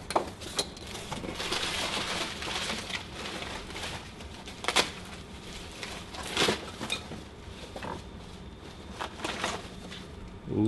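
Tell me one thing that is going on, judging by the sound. Cardboard flaps rustle and crinkle as a box is opened.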